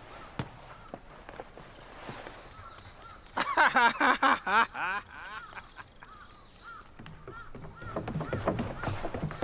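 Small footsteps patter quickly as a girl runs.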